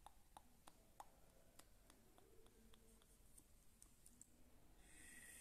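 Soft wet mouth clicks and lip smacks sound up close.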